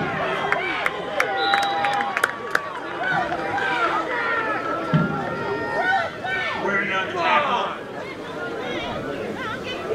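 Young players shout to each other on a field.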